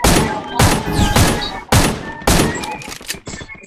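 Gunshots crack loudly in quick bursts.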